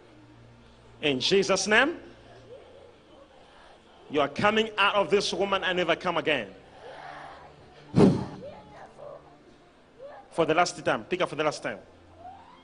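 A man speaks loudly and forcefully through a microphone.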